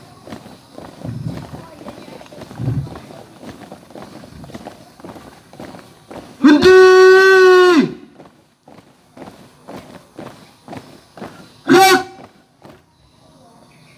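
Many feet march in step on dirt ground outdoors.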